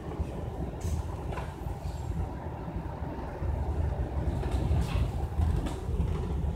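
A bus engine rumbles close by as the bus pulls away.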